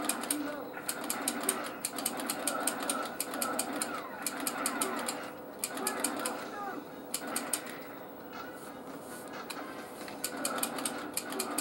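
A plastic toy gun trigger clicks repeatedly.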